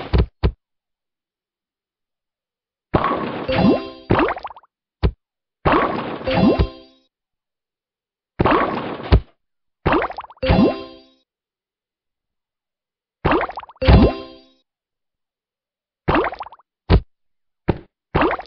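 Game blocks pop and burst in quick bursts of bright, chiming effects.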